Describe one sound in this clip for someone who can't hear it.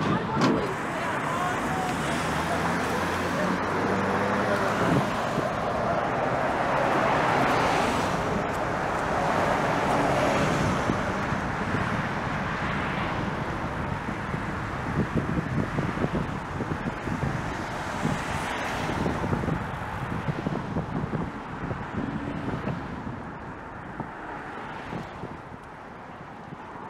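Traffic rumbles steadily along a busy road nearby.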